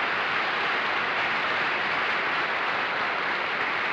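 A man chuckles.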